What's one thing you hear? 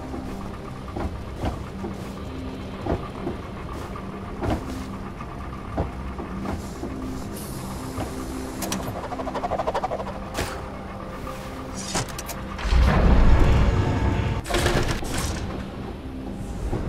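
Soft thumps sound as a small figure jumps and lands.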